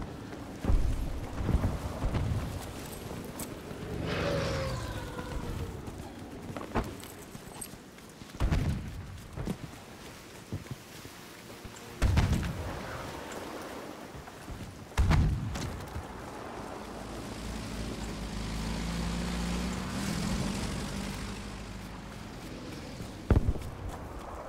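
Explosions boom loudly nearby.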